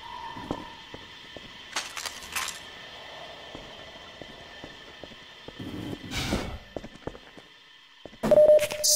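Footsteps tap on a hard floor at a steady walking pace.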